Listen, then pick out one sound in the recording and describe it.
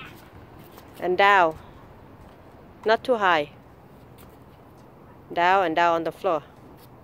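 A young girl calls out brightly, close by.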